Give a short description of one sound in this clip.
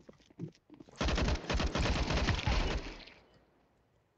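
Rapid rifle fire crackles in a quick burst.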